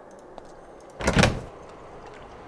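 A game window opens with a short chime.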